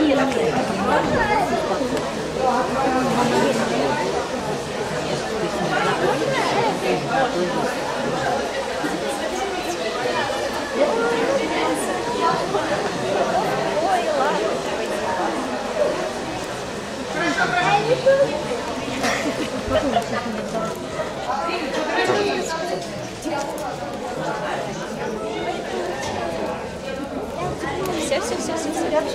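A crowd of people chatter throughout a large echoing hall.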